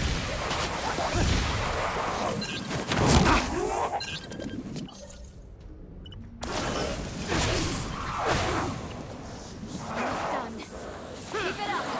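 Fire bursts and roars in a game.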